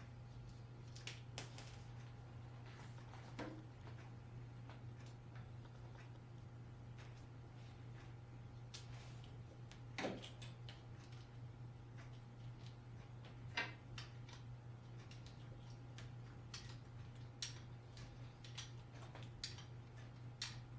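Small metal parts click and clack as a man handles wiring.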